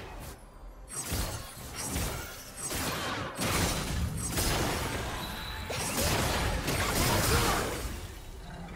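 Game hits thud and clash.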